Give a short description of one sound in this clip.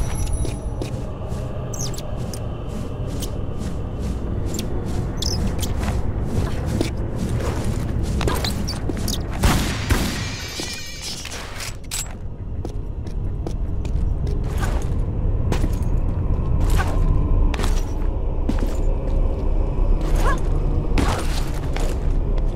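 Footsteps and landing thuds sound on stone.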